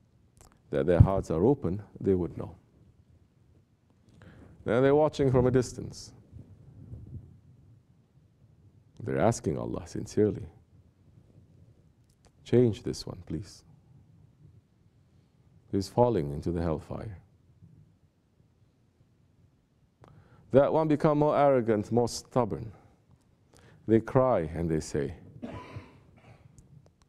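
A man speaks calmly and deliberately into a nearby microphone, with pauses between phrases.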